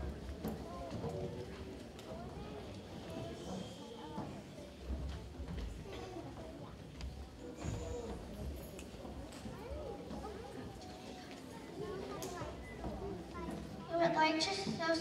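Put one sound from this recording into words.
A young boy reads out through a microphone.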